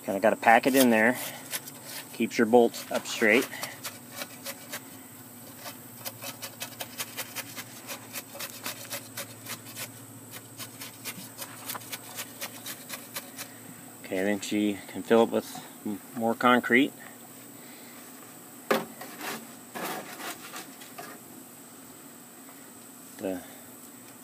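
A trowel scrapes and taps wet concrete in a block.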